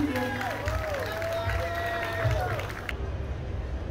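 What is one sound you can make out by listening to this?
A band plays music through loudspeakers.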